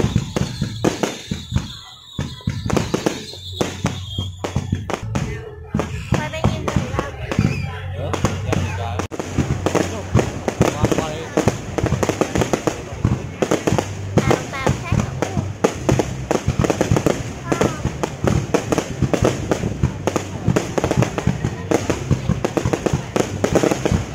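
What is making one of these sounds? Fireworks burst with loud bangs and crackles.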